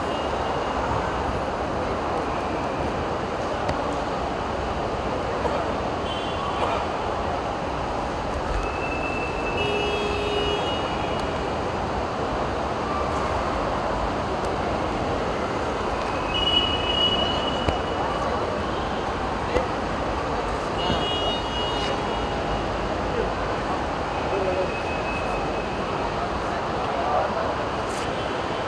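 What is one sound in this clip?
A steady outdoor murmur fills the open air.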